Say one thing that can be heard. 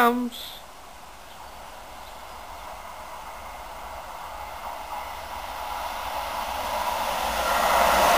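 A train approaches along the track with a steadily growing rumble.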